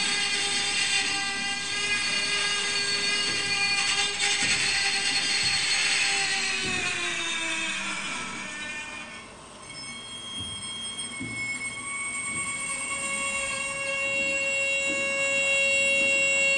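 A bow draws across taut wires, making a sustained droning tone that slides in pitch.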